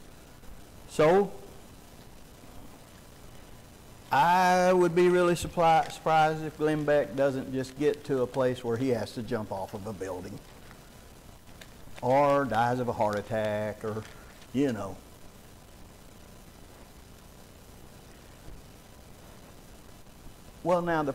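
A man speaks slowly through a microphone in an echoing room, with long pauses.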